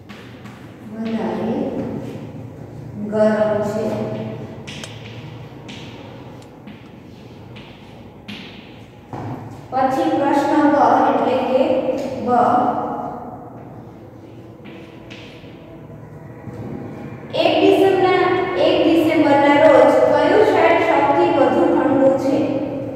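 A woman speaks clearly, teaching aloud, close by.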